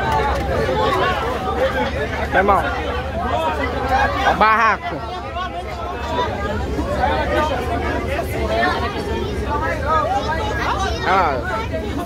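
A crowd of men and women talk and shout loudly all around, close by.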